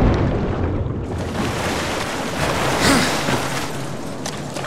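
Water splashes and sloshes as a swimmer breaks the surface.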